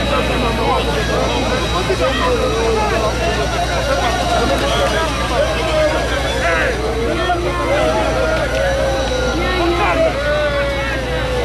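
A crowd of men and women talks and calls out loudly all around.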